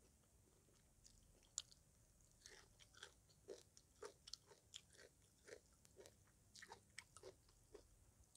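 A woman chews food noisily with wet smacking sounds, close to a microphone.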